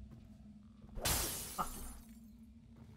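Glass shatters loudly.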